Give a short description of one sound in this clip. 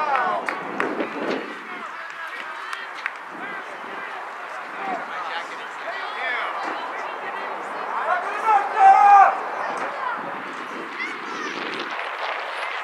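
Players shout and call out to each other across an open field.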